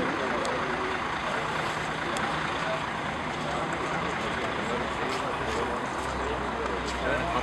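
A group of men and women chatter nearby outdoors.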